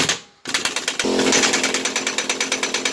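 An impact wrench hammers rapidly and loudly.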